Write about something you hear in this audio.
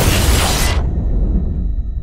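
Cloth rubs and thumps close against a microphone.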